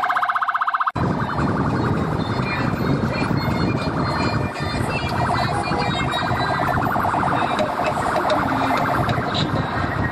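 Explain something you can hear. A car engine hums as it drives along a road.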